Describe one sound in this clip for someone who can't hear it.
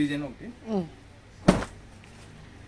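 Cloth rustles and flaps.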